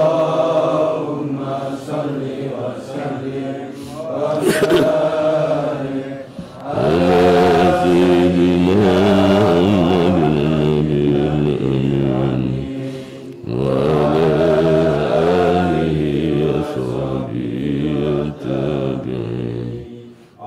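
A middle-aged man recites in a melodic chanting voice through a microphone.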